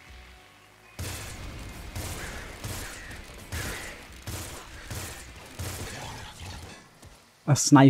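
Explosions boom repeatedly in a video game.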